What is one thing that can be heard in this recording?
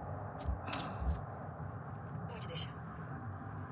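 Leaves and grass rustle.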